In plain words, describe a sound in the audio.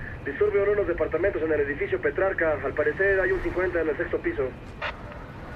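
A man speaks calmly in a car.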